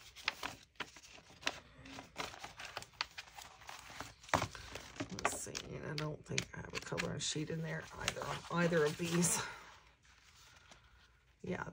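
Paper pages rustle and flip as a booklet is handled.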